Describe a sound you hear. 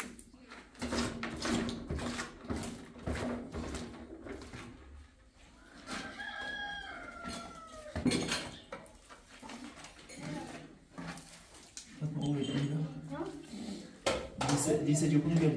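A trowel scoops wet plaster from a plastic bowl.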